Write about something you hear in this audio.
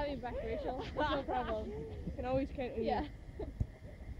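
A young woman talks with animation nearby, outdoors.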